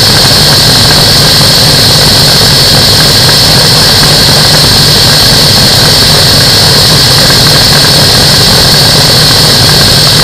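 A light aircraft's engine drones loudly and steadily.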